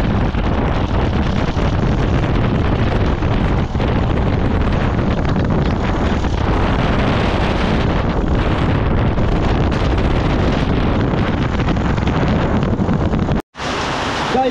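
Wind roars loudly against the microphone.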